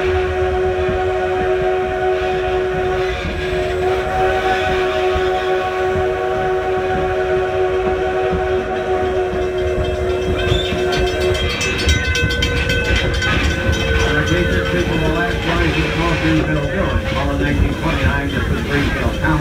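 A steam train rumbles and clatters along the tracks.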